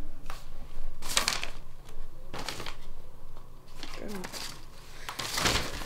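Sheets of paper rustle and shuffle.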